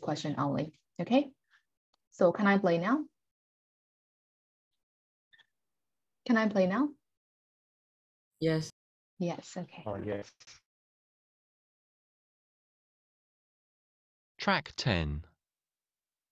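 A woman speaks calmly into a microphone, with pauses.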